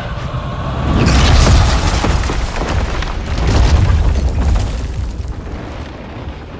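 Thunder rumbles loudly.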